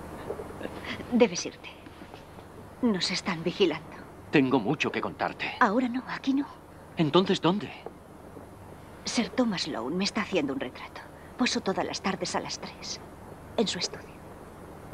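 A woman speaks with feeling, close by.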